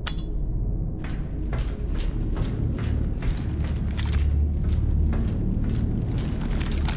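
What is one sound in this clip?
Boots clank in quick steps on a metal grating.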